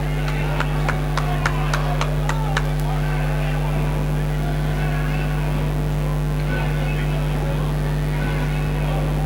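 A large crowd murmurs and chatters throughout.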